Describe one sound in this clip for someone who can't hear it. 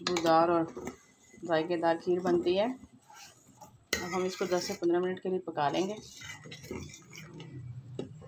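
A spoon stirs thick liquid in a metal pot.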